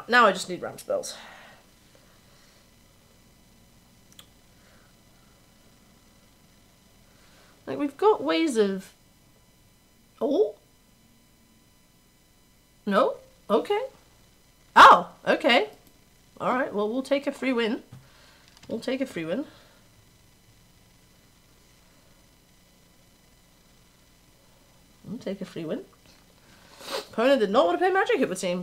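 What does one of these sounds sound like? A young woman talks casually into a close microphone, in short bursts with pauses.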